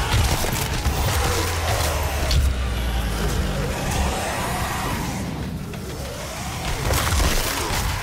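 Flesh crunches and tears in brutal blows.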